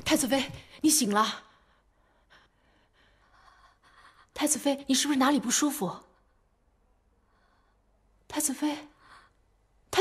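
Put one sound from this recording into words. A young woman speaks softly and with concern, close by.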